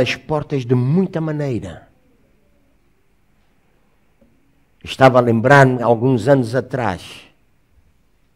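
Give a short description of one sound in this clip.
A middle-aged man speaks calmly through a microphone, pausing between phrases.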